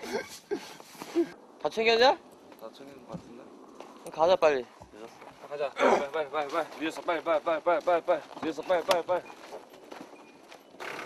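Young men talk quickly and with animation close by.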